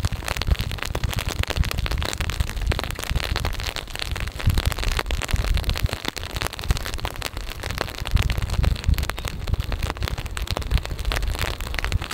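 Rain patters steadily on a wooden deck and water outdoors.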